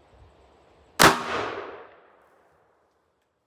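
A revolver fires a single loud shot outdoors, echoing away.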